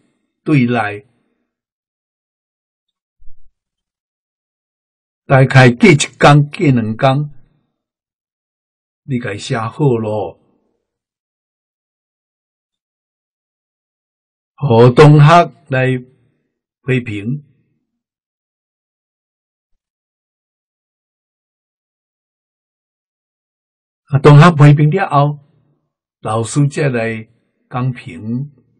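An elderly man speaks calmly and slowly in short phrases, close to a microphone, with long pauses.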